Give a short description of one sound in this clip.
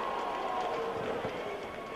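A wrestler slams down hard onto the ring mat with a thud.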